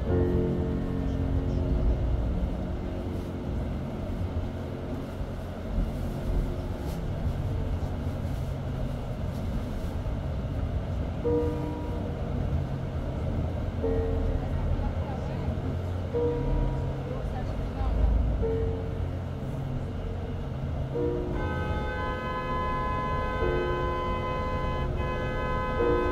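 A car engine hums steadily at low pitch while driving.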